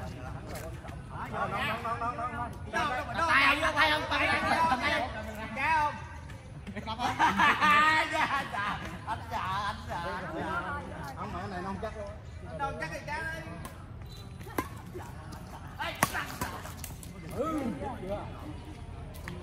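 Adults talk and call out with animation nearby.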